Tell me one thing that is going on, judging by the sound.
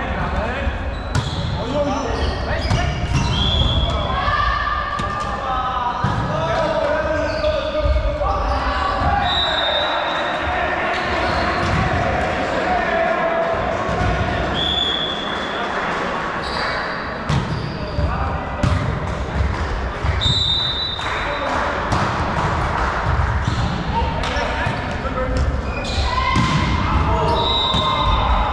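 Men call out and shout to each other in a large echoing hall.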